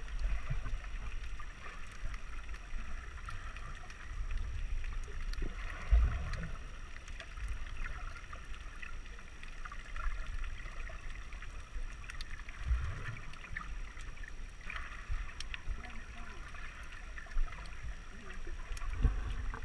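Underwater, water rushes and bubbles in a muffled hiss around the microphone.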